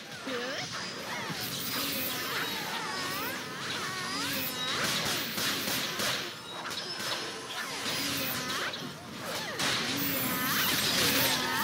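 Magical blasts whoosh and crackle in a busy fight.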